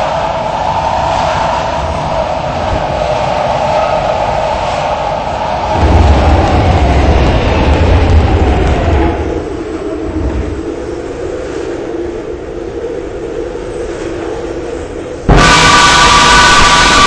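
An electric train whines and rumbles as it runs along the track.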